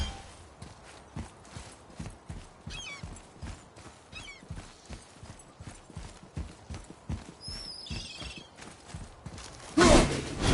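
Heavy footsteps thud on stone at a steady pace.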